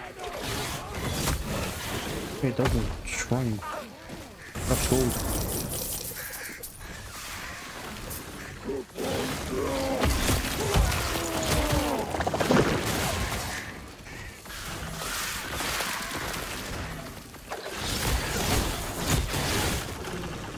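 Spell blasts burst with sharp booms.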